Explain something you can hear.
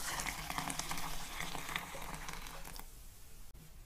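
Hot water pours and splashes into a bowl.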